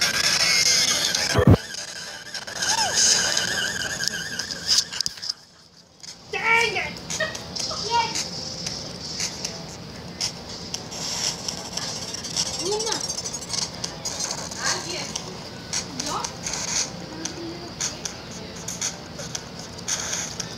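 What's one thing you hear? Chiptune video game music plays.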